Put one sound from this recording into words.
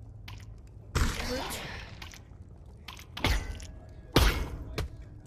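A sword swishes through the air with sharp thuds.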